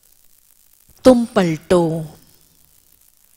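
A woman speaks briefly and calmly into a microphone.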